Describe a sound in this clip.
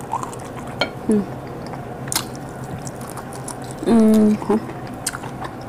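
A young woman hums with pleasure while eating, close to a microphone.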